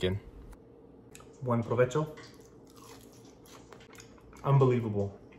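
A young man chews crunchy food.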